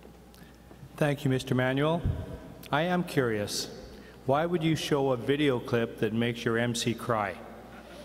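An older man speaks animatedly through a microphone and loudspeakers in a large hall.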